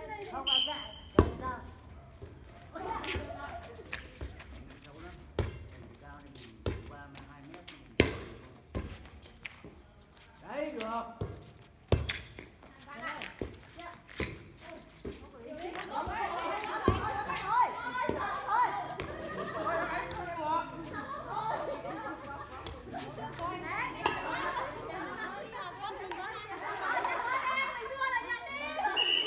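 Young players shout and call out outdoors.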